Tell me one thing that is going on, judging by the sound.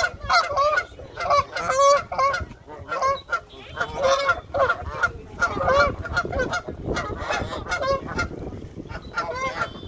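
Geese honk loudly nearby.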